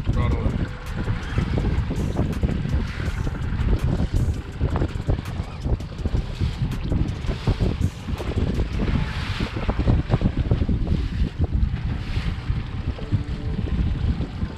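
Waves slosh and splash against a moving boat.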